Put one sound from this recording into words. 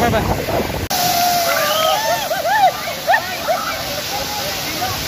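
Children shout and squeal excitedly nearby.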